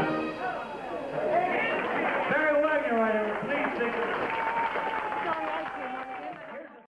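A man sings into a microphone over the band.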